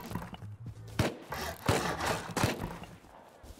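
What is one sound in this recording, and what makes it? Rockets explode with sharp booms.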